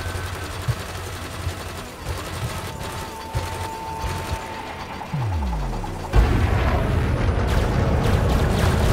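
A spaceship engine hums low and steady.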